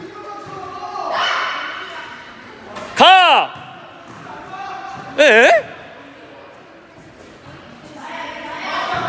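Children call out in a large echoing hall.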